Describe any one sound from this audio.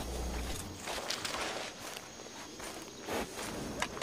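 A horse's hooves thud slowly on the ground.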